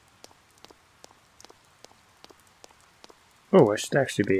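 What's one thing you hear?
Soft footsteps tap on pavement.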